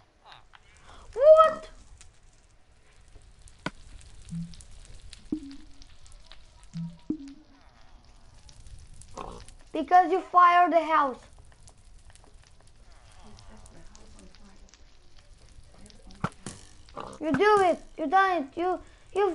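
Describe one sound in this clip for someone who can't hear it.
Fire crackles steadily.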